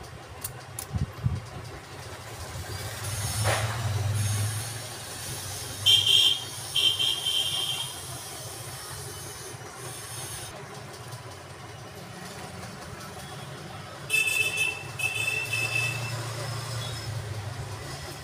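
Small metal parts clink and knock against a hard surface.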